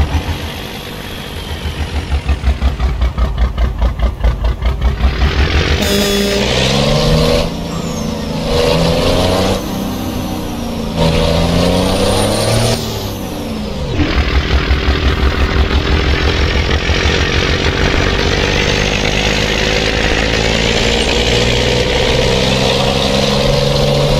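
A heavy diesel truck engine rumbles with a throbbing beat.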